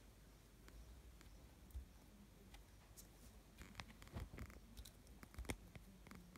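A hen pecks at a mat with soft taps.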